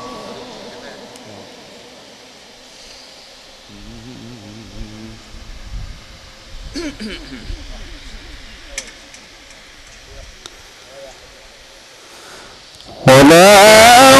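A crowd of men murmurs and chatters nearby.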